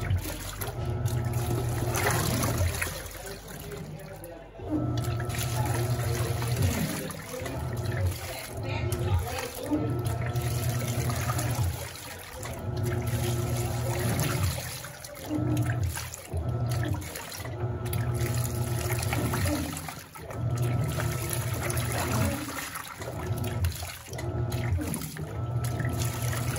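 Water sloshes and churns around the laundry.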